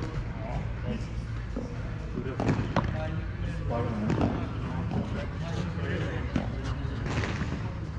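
Men talk nearby in a relaxed way.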